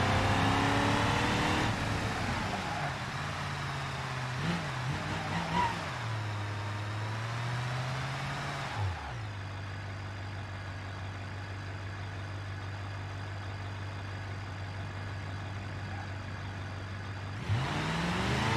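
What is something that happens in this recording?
Tyres hum on asphalt.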